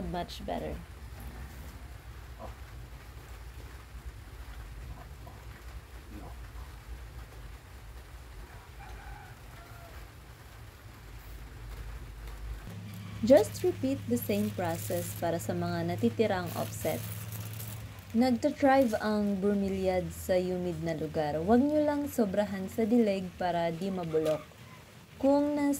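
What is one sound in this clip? Dry coconut fibre rustles and crackles as hands pull at it.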